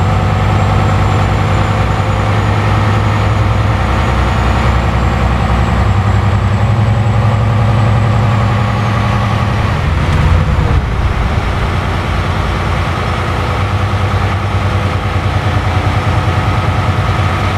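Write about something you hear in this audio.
A truck engine drones steadily while driving down a highway.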